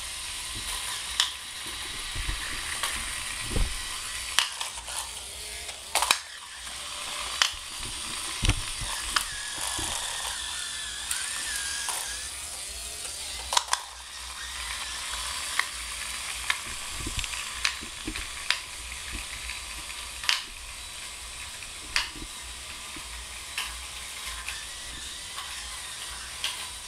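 A small robot car's motors whir as it drives across a tiled floor.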